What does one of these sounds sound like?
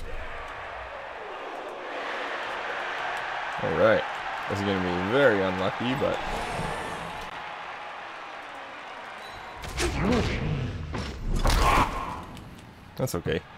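A large crowd cheers and roars steadily in a stadium.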